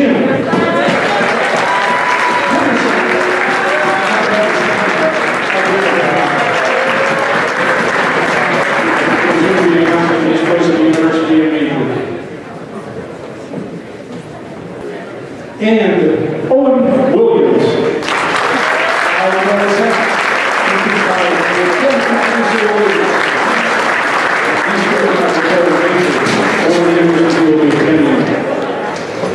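A crowd cheers loudly in a large echoing hall.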